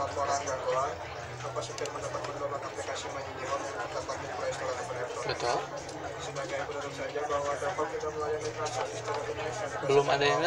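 A computer mouse clicks.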